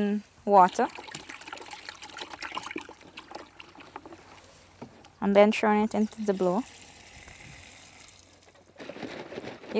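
Liquid splashes as it pours from a bucket into a tank.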